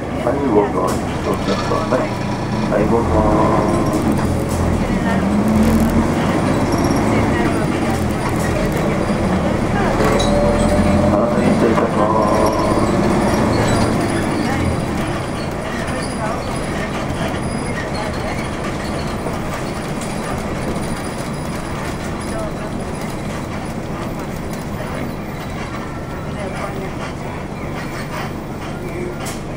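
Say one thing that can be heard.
A car engine hums and tyres roll steadily on the road.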